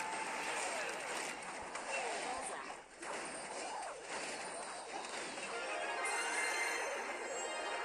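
Arrows whoosh and game creatures clash in an electronic battle.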